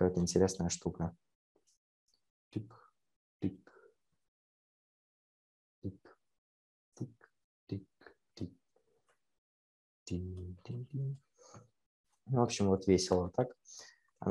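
A young man talks calmly into a nearby microphone, in short bursts.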